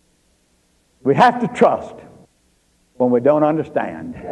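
An elderly man speaks calmly and close up.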